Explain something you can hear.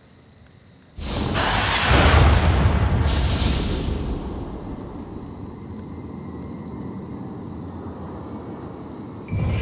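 A loud magical blast roars, then slowly fades to a low rumble.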